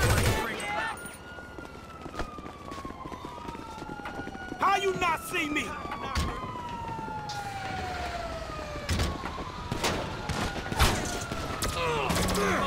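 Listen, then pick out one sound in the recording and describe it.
A police siren wails and wavers in the distance.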